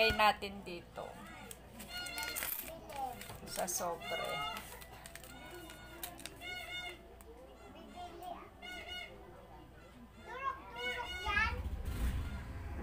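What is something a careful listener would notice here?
A paper envelope rustles and crinkles in someone's hands.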